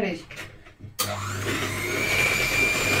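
An electric hand mixer whirs loudly.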